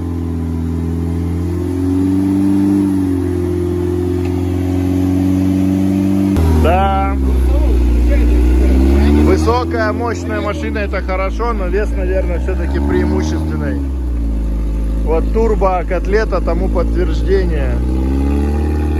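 Tyres spin and churn through thick mud.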